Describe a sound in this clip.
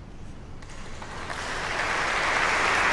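An audience applauds, growing louder.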